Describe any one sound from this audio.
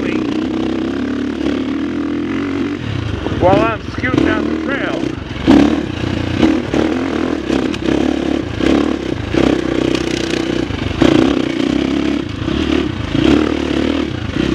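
Tyres crunch and rattle over loose rocky ground.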